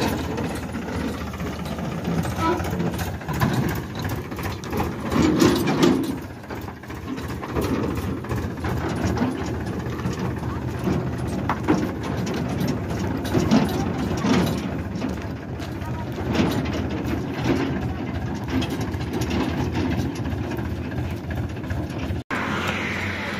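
A trailer rattles and clanks over a bumpy dirt track.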